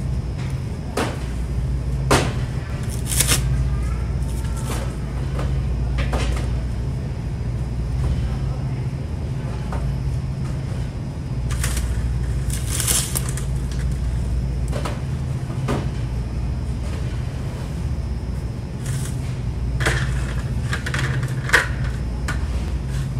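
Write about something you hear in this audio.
Plastic bottles knock and clatter as they are set onto a shelf.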